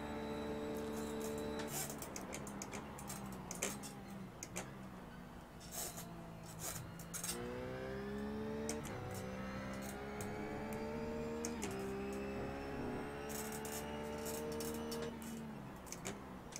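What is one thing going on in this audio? A racing car engine revs up through the gears.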